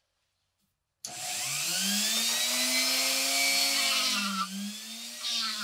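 A small rotary tool whirs at high speed, buffing metal.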